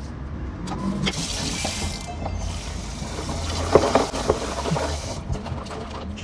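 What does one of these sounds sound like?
Water runs from a tap into a metal bowl.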